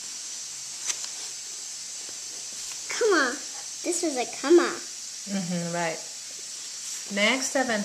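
Paper pages rustle as a book's pages are turned.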